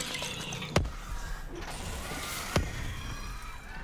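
A glass jar smashes with a heavy thud.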